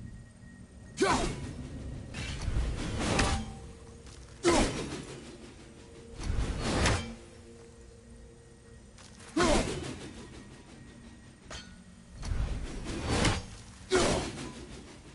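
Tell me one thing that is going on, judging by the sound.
An axe strikes hard with a sharp metallic thud.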